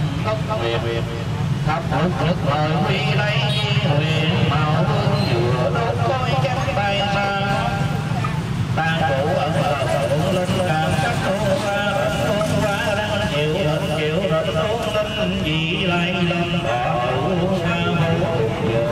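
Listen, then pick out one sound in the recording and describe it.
An elderly man chants steadily into a microphone, heard through a loudspeaker.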